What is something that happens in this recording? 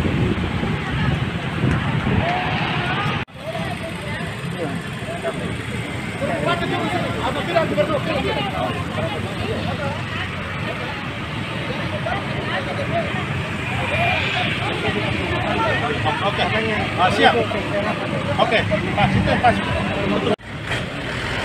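A crowd of men and women talks and murmurs outdoors.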